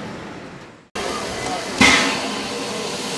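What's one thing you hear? A steam locomotive hisses loudly close by.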